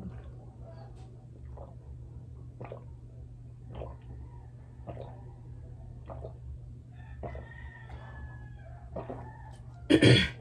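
A young woman gulps a drink in small swallows.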